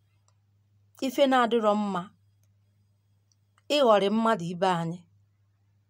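A woman speaks close up in two short, emotional bursts, her voice rising and falling.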